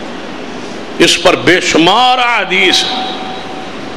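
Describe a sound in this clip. A man chants melodiously into a microphone, with a reverberant echo.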